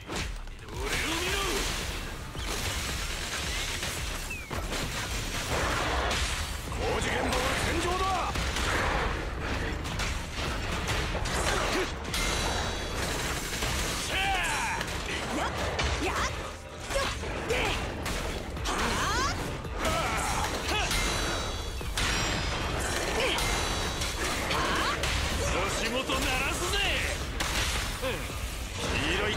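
Blows and electric zaps crackle rapidly in a fight.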